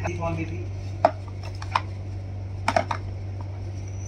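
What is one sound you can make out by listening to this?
Plastic toy parts click and tap under small hands.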